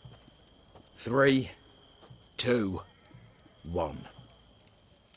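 A man counts down slowly in a low, calm voice.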